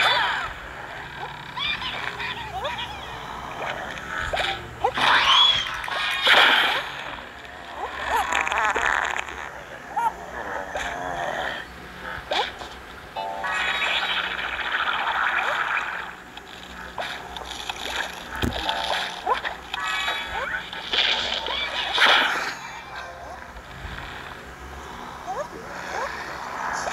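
Game sound effects pop, zap and chime as plants fire at zombies.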